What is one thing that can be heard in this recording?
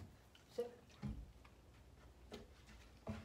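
A puppy's paws thump on a wooden step.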